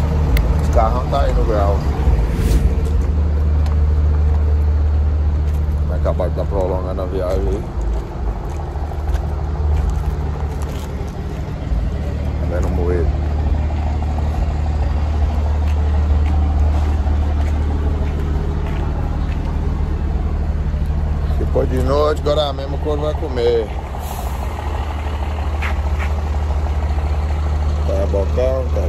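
A young man talks close by, casually, in short bursts.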